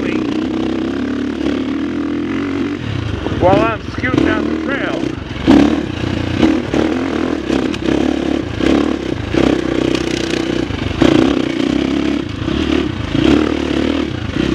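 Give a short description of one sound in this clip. A dirt bike engine hums steadily and revs up and down.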